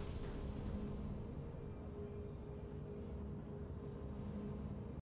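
A low, steady game tone hums.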